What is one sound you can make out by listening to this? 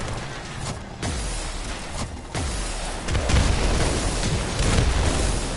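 Loud blasts and crashes boom in quick succession.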